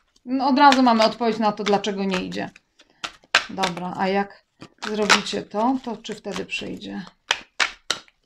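A young woman speaks calmly and closely into a microphone.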